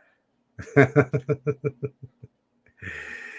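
A middle-aged man laughs heartily close to a microphone.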